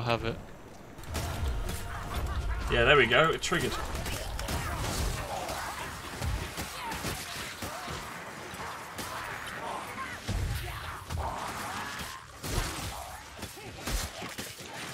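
Blades slash and strike repeatedly in a close fight.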